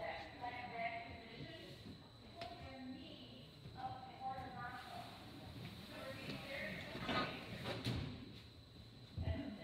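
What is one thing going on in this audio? Women and girls chat nearby, with voices echoing in a large hall.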